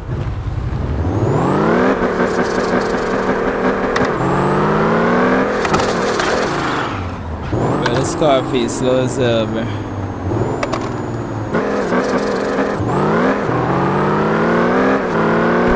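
A sports car engine revs hard and climbs through the gears.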